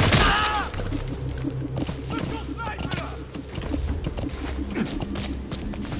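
A horse's hooves thud as it trots over dirt.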